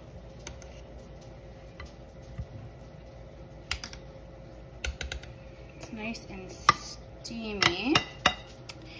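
A spoon scrapes and taps against a metal pot.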